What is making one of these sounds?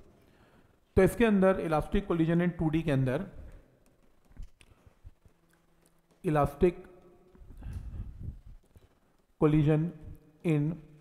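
A man speaks in a steady lecturing voice, close by.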